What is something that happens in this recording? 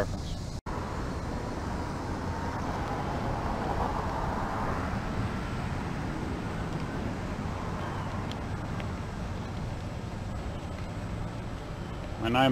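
A small wheel rolls and whirs along pavement.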